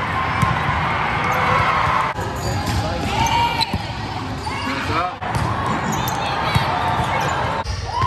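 A crowd of spectators murmurs and chatters in the background.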